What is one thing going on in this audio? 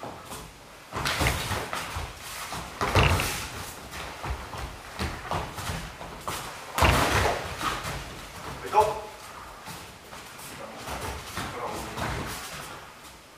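Padded punches and kicks thud against protective gear.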